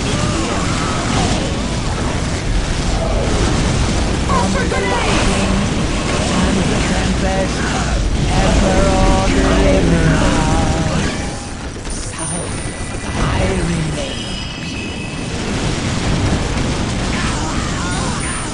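Flamethrowers roar in bursts.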